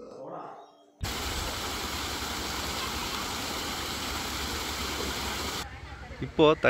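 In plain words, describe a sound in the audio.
Water rushes steadily over a small weir.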